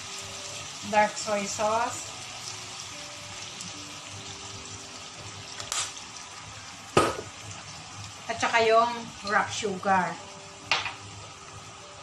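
Meat sizzles softly in a hot frying pan.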